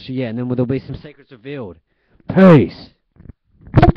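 A young man speaks close to the microphone with animation.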